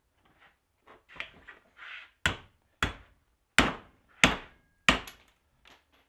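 A hammer strikes metal in sharp, ringing blows.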